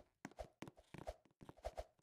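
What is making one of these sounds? Quick light footsteps patter on a hard floor.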